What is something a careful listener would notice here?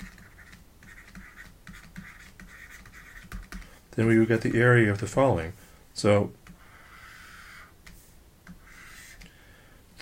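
A pen scratches softly while writing.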